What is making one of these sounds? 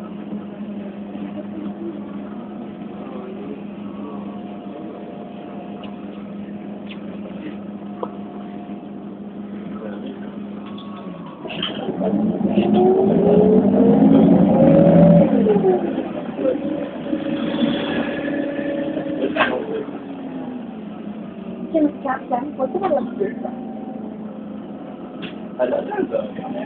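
A vehicle engine hums steadily from inside.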